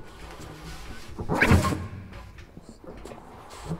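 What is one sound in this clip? A saxophone plays into a microphone.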